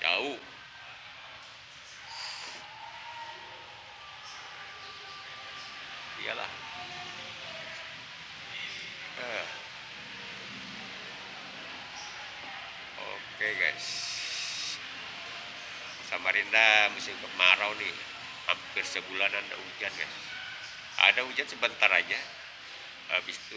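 A young man talks close by, calmly, in a large echoing space.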